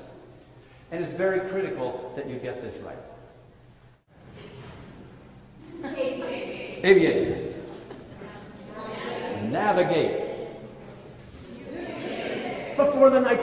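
An elderly man speaks expressively and theatrically in a reverberant hall.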